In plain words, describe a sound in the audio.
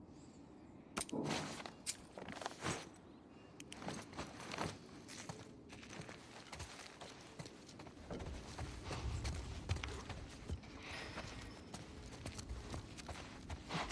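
Footsteps crunch on debris.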